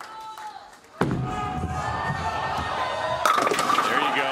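A bowling ball rumbles down a wooden lane.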